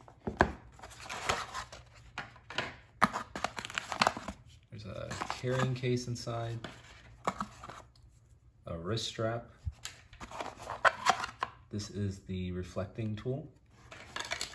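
Cardboard and plastic packaging rustles as it is handled.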